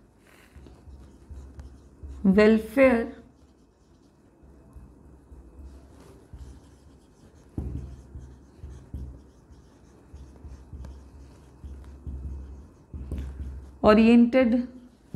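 A marker squeaks and taps on a whiteboard.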